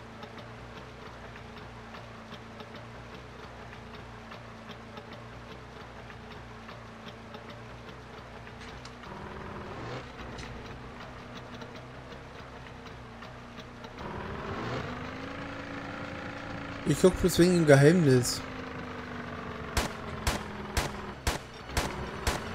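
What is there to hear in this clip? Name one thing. A boat motor drones steadily, rising in pitch as the boat speeds up.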